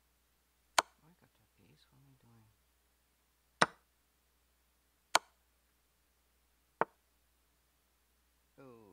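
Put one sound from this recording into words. A man speaks quietly and calmly close to a microphone.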